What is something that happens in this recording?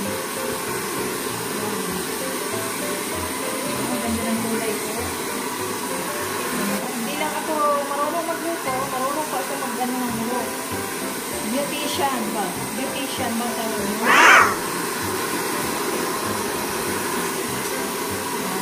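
Hands rustle softly through long hair.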